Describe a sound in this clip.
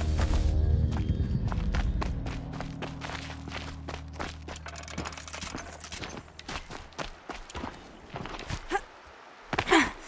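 Footsteps crunch on dry, gravelly ground.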